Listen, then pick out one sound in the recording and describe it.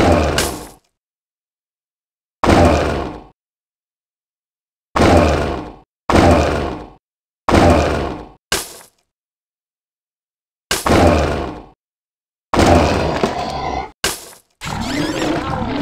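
Weapon blows land with loud, ringing hits, again and again.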